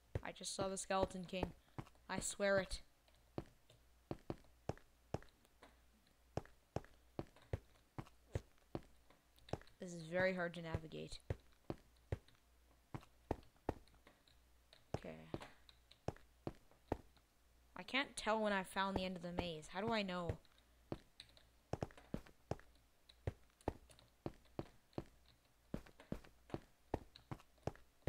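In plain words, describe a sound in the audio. Footsteps tap steadily on hard stone.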